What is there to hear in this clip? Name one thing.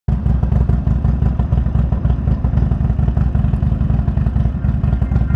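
A motorcycle engine idles and rumbles with a rapid low throb.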